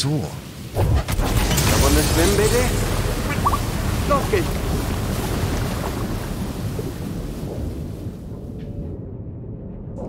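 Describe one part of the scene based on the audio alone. Water gushes and roars loudly through a breach.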